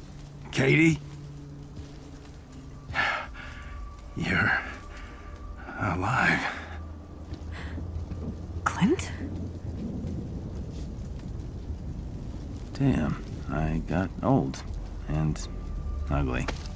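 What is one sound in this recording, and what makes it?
An elderly man speaks in a low, gravelly voice.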